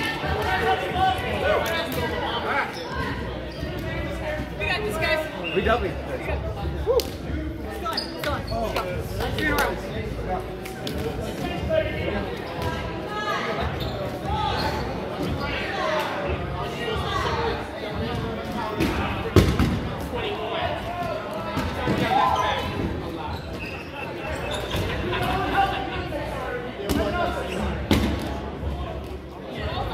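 A crowd of adults chatter and call out in a large echoing gym.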